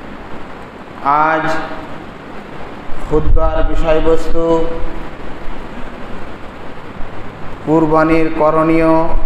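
A man recites in a slow, melodic voice through a microphone.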